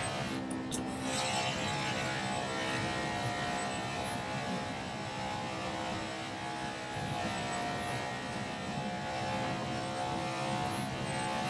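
A stock car V8 engine roars at high revs in a racing game.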